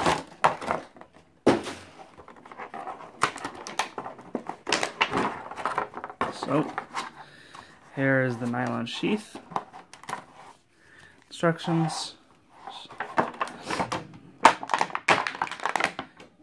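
Stiff plastic packaging crinkles and crackles as hands pull it open.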